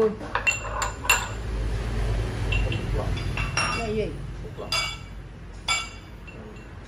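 Ceramic cups clink and knock against a stone surface.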